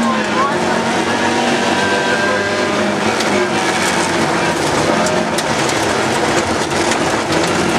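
A rally car engine roars loudly from inside the cabin.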